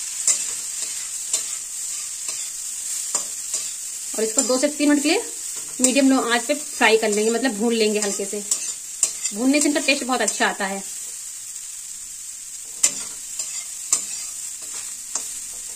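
A metal spatula scrapes and clatters in a pan.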